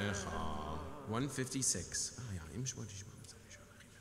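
A man speaks through a microphone in a large echoing room.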